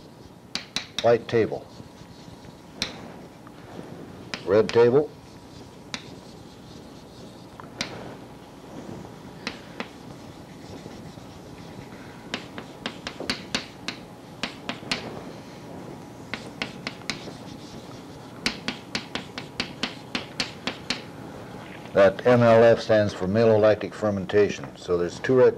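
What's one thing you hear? An elderly man speaks calmly, as if lecturing.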